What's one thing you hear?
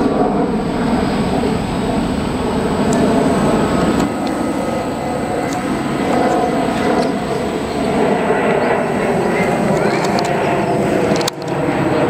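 A jet airliner roars steadily overhead.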